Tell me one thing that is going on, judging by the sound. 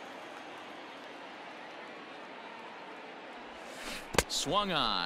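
A stadium crowd murmurs.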